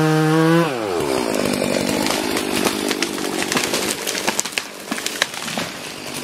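A pine tree falls, its branches cracking and crashing through the canopy.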